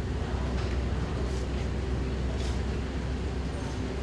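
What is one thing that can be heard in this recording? A woman talks quietly on a phone.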